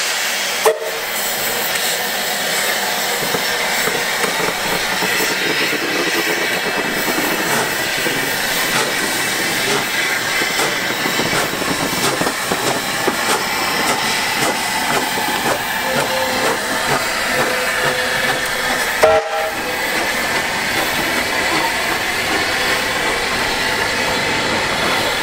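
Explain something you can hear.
A steam locomotive hisses and chuffs as it rolls slowly past, close by.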